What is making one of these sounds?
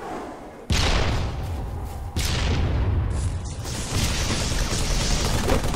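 Rapid gunfire bursts out loudly in quick volleys.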